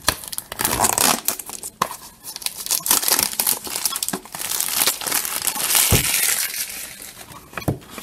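Plastic wrapping crinkles and rustles as hands tear it off.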